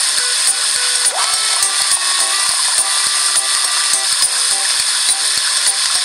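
Liquid pours and fizzes into a cup.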